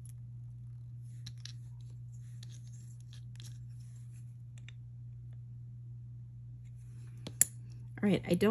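Small metal jewellery pieces clink softly.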